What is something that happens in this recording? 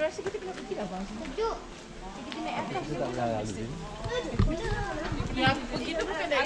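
Several women talk nearby, outdoors.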